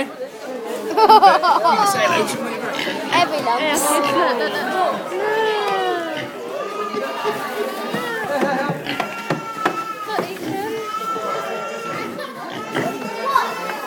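A crowd of children and adults chatters nearby.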